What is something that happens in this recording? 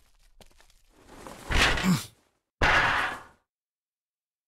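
A metal grate rattles and clangs as it is kicked loose.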